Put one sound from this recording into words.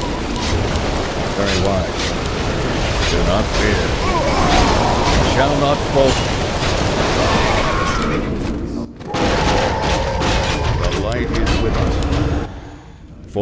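Spell effects and weapon clashes sound from a busy fantasy battle.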